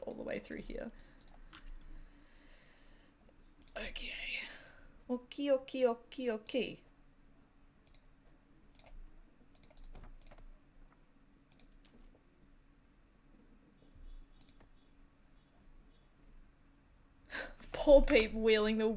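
A woman talks close to a microphone, with pauses.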